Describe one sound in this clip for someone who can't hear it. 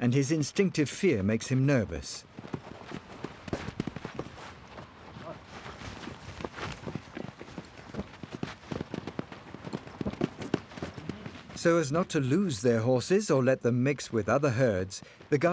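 A horse thrashes and kicks in loose dirt.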